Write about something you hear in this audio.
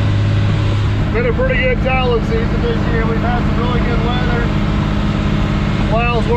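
A man talks to the listener at close range, raising his voice over the engine.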